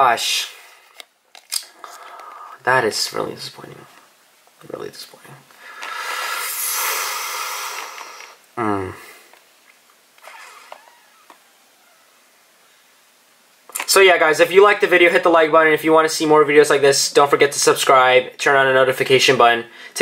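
Trading cards rustle and slide as hands handle them.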